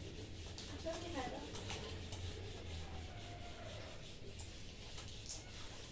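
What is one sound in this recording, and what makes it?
A duster rubs across a board.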